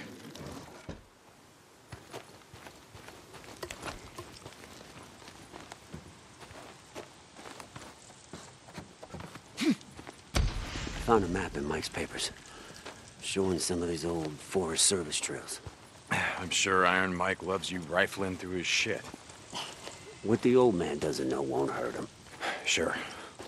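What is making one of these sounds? Footsteps crunch on dirt and dry grass.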